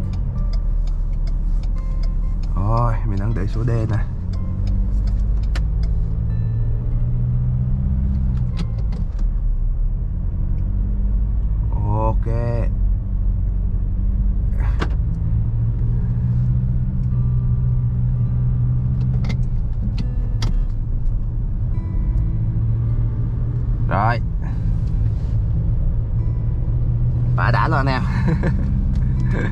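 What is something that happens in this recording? A car engine hums steadily from inside the cabin as the car drives along.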